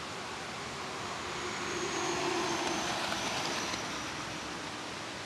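A heavy truck roars past on a road nearby.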